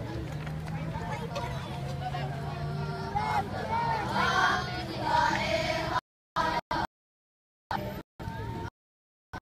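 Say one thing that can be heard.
A crowd of children chants and shouts together outdoors.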